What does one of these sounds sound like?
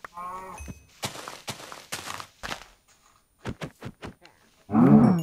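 A sword strikes with sharp thuds.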